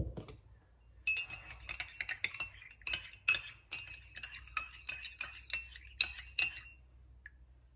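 A spoon clinks against a cup as it stirs.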